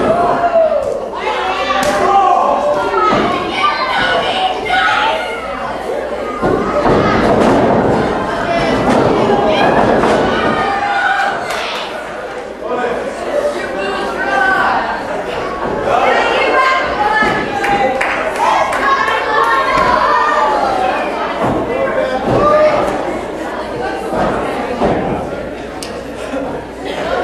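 A small indoor crowd shouts and cheers.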